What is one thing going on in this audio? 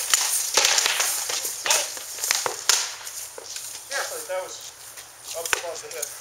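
Plate armour clanks and rattles as a fighter walks.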